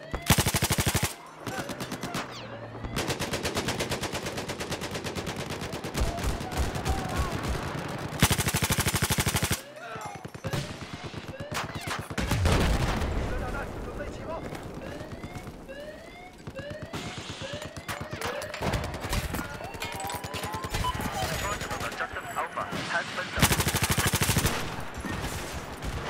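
A machine gun fires in long rapid bursts close by.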